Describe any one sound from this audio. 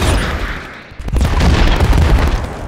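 A fireball bursts with a loud roaring whoosh.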